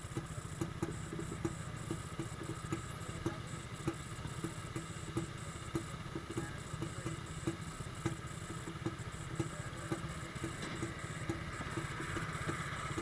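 A motorcycle engine idles close by with a steady, throbbing rumble.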